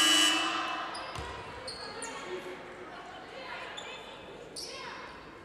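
Sneakers squeak on a hardwood court in a large echoing hall.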